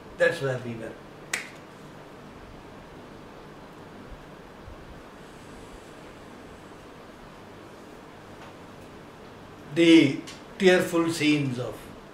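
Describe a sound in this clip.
A middle-aged man speaks calmly and close by, with long pauses.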